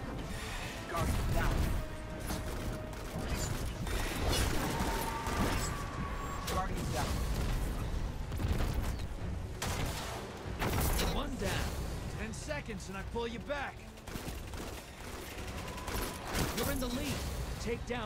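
Rapid gunfire rings out with loud, sharp shots.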